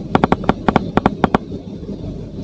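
Short, quick clicks pop as blocks stack up.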